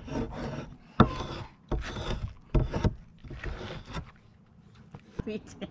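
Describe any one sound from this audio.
A blade scrapes and shaves bark from a wooden log.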